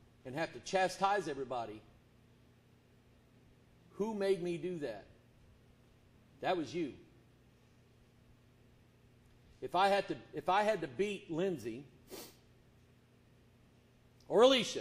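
A middle-aged man preaches with emphasis into a microphone, in bursts with pauses.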